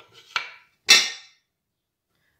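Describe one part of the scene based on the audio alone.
Food pours into a ceramic bowl with a short clatter.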